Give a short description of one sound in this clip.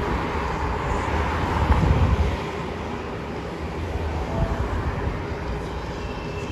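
Cars drive past on a road nearby.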